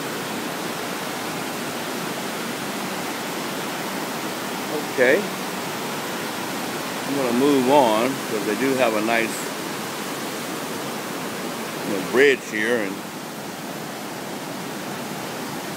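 River rapids rush and roar steadily nearby.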